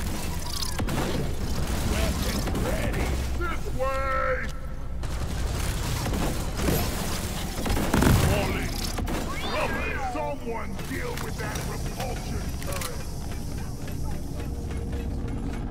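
Rocks crumble and explosions thud.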